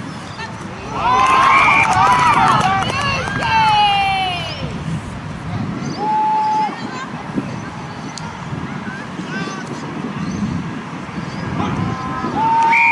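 Young women shout calls to each other across an open field.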